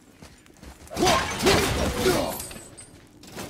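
A clay pot shatters loudly.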